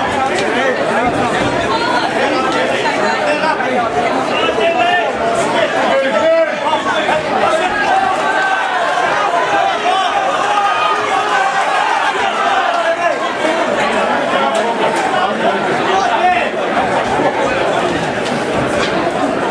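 Boxing gloves thud as punches land.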